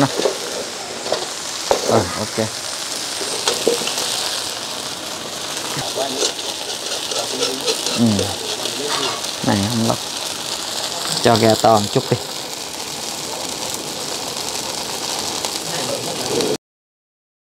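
Food sizzles and fries in a hot wok.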